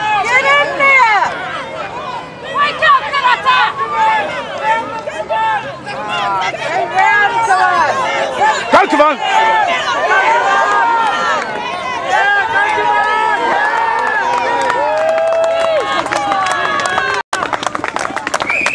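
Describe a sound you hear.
A crowd of children shouts and cheers excitedly outdoors.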